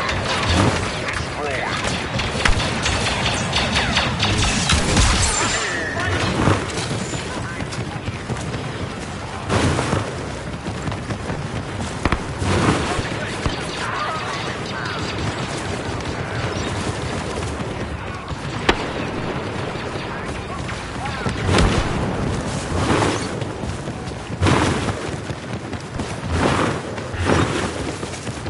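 Blaster shots fire in quick bursts.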